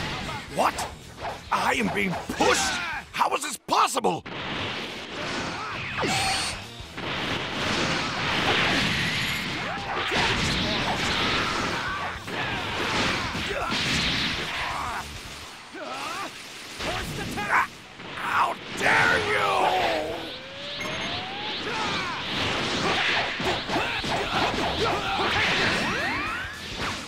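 Energy blasts and punches crash and whoosh in a fast fight.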